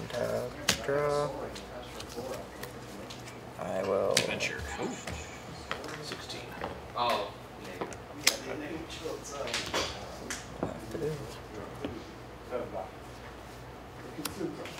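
Playing cards shuffle and riffle softly in hands.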